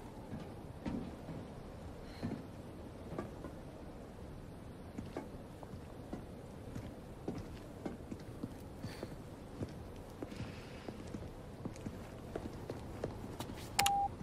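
Footsteps crunch on gravel at a steady walking pace.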